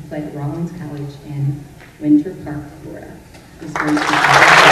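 A middle-aged woman speaks calmly into a microphone in a hall.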